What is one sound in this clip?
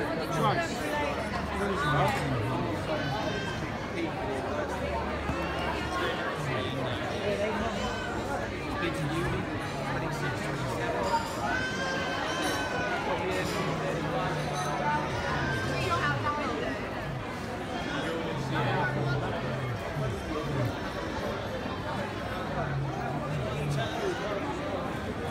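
Cutlery and glasses clink on tables.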